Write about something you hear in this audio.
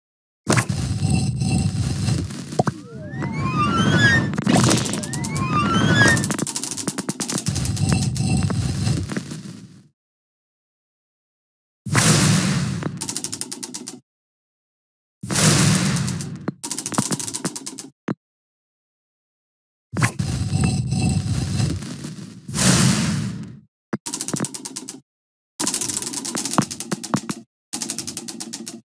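Playful chiming and popping game effects burst in quick flurries.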